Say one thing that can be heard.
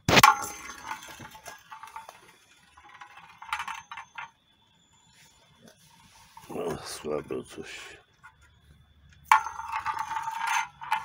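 A metal pan lid spins and rattles with a bright ringing.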